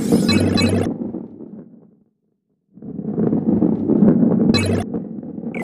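A bright electronic chime rings as a coin is collected.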